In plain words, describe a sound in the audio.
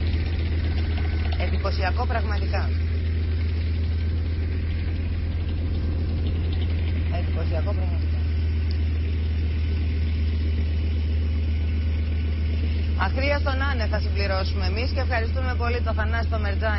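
A large diesel engine rumbles steadily.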